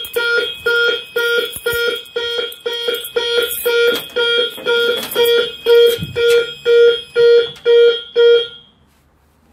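A fire alarm panel beeps in rapid, loud pulses, then stops.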